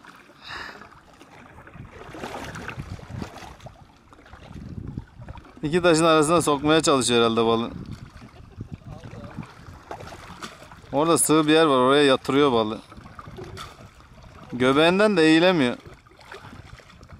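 Water ripples gently against rocks nearby.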